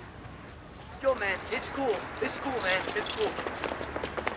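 Several young men shout and jeer.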